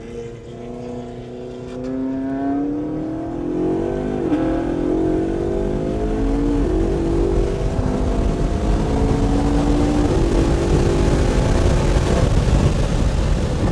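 Wind and road noise rush louder and louder as the car gains speed.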